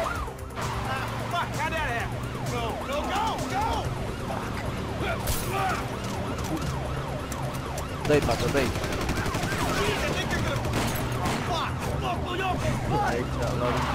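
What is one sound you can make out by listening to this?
A police siren wails up and down close by.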